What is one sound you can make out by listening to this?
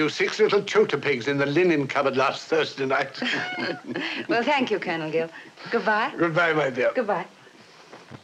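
A young woman speaks cheerfully and close by.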